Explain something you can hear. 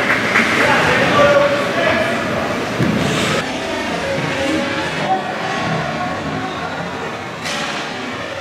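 Spectators cheer and call out in a large echoing rink.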